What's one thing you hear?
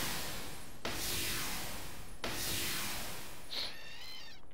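Magic spells whoosh and hiss in long bursts.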